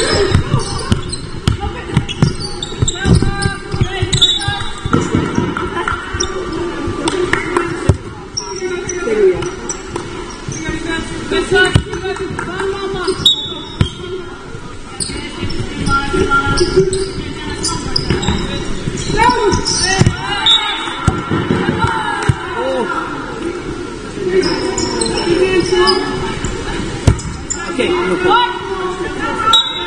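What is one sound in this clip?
Young women call out to each other across the court.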